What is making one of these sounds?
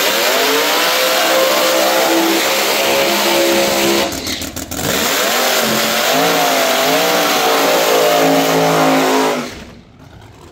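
A drag racing engine roars loudly and revs up and down.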